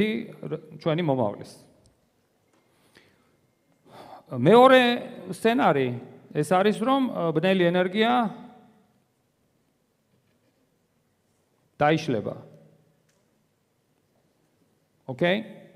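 A man lectures into a microphone, in a large echoing hall.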